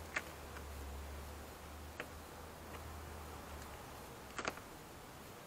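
A sheet of plastic crinkles as it is peeled away.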